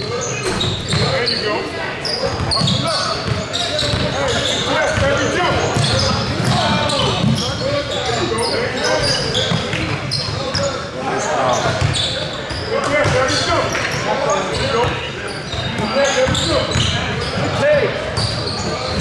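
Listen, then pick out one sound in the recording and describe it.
A crowd of players and spectators chatters and calls out in a large echoing gym.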